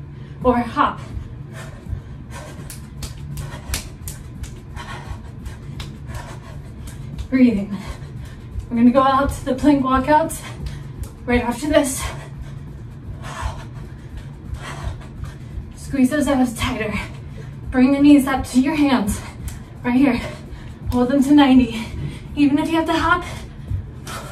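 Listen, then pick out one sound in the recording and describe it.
Feet thump lightly on a carpeted floor in a quick rhythm.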